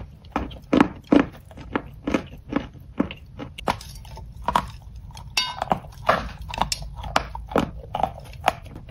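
A woman bites and chews a crunchy, powdery snack close to a microphone.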